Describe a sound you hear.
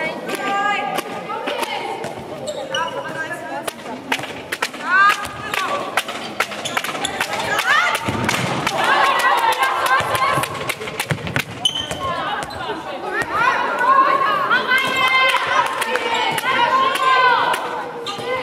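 A ball bounces on the floor with dull thuds.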